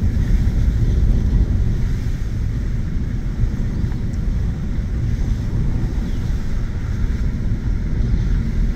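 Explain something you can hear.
Tyres crunch and rumble over a dirt road.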